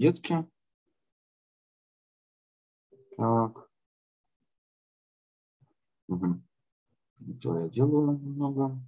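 A man speaks calmly, in short phrases, heard through an online call.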